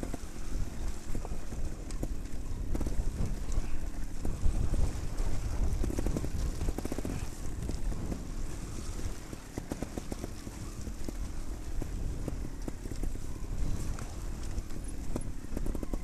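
Wind rushes loudly past, buffeting steadily.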